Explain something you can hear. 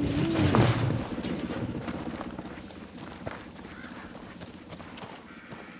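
Footsteps crunch through dry brush.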